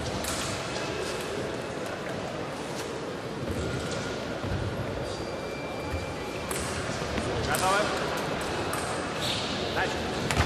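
Footsteps of a man tap across a hard floor in a large echoing hall.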